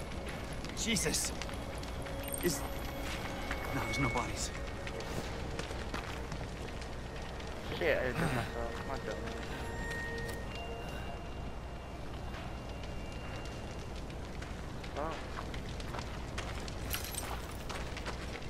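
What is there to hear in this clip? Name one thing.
Flames crackle and roar steadily nearby.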